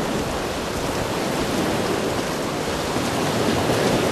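Waves splash against a wooden pier.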